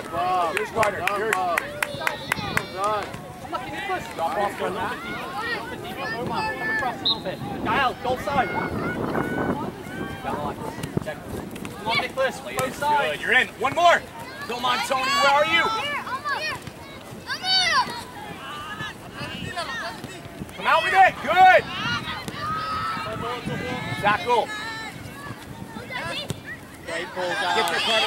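Adult spectators shout encouragement from the sidelines.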